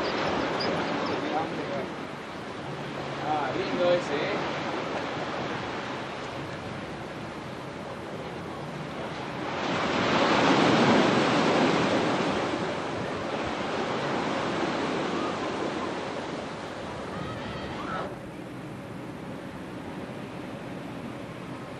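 Wind blows hard across an open shore.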